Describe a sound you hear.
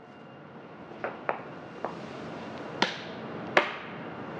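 An office chair's parts click and clunk as a woman adjusts it.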